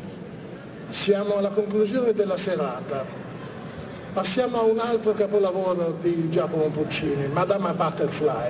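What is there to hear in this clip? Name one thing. A man speaks with animation into a microphone, heard over loudspeakers in an echoing hall.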